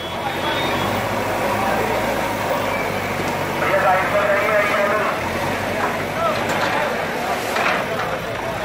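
A crowd of men talk and shout outdoors.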